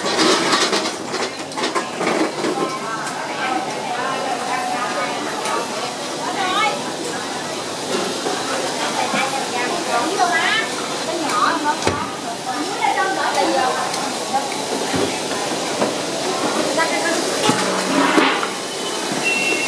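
A crowd of people chatters all around.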